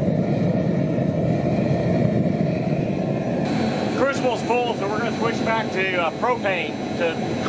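A gas furnace roars steadily.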